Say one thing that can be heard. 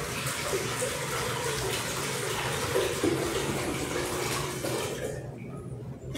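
Water pours from a pitcher into a glass.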